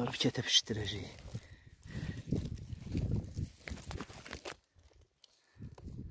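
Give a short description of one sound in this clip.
A plastic sack rustles and crinkles close by.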